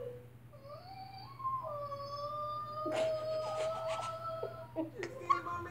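A young boy squeals in a high, drawn-out voice.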